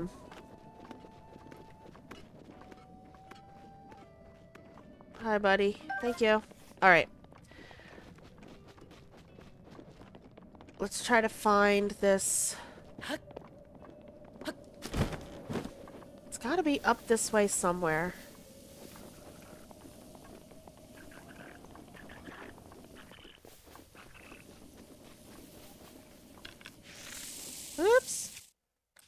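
Footsteps run lightly over grass and rock.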